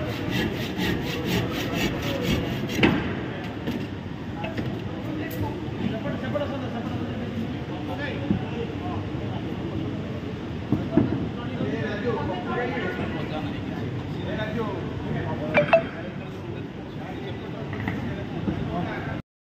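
People chatter in the background of a large hall.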